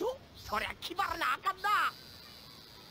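A boy speaks eagerly.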